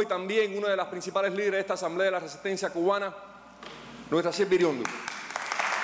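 An elderly man speaks with animation through a microphone in a large room.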